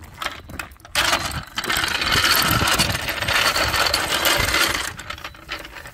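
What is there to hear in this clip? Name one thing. A floor jack's wheels rattle and crunch as it is pulled over gravel.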